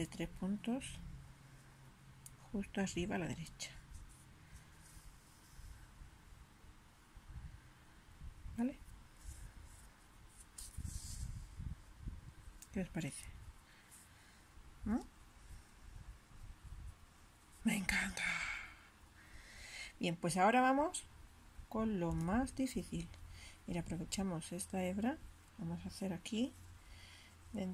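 Thread rustles softly as it is pulled through knitted stitches.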